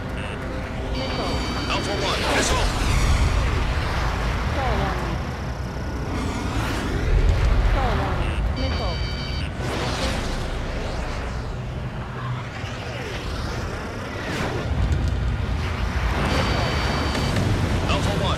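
Warning beeps sound in quick bursts.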